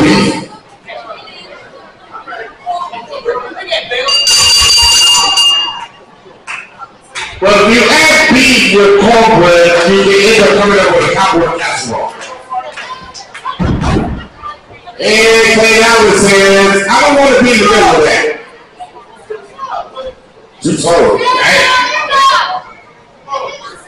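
A crowd cheers and shouts in an echoing hall.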